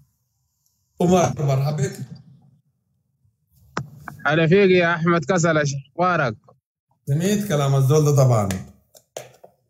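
A man speaks through an online call, talking with animation.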